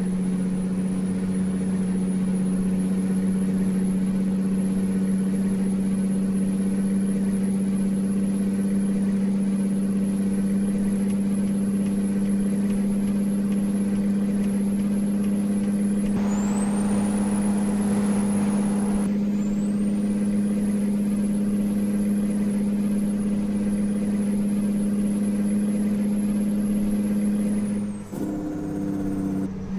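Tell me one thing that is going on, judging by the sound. A truck engine drones steadily at low pitch.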